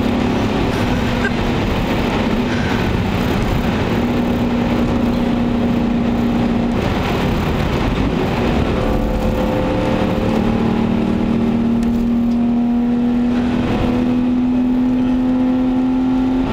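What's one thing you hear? A car engine drones steadily from inside the cabin, changing pitch as the car speeds up and shifts gears.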